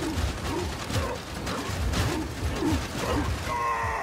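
Wooden planks crash and splinter nearby.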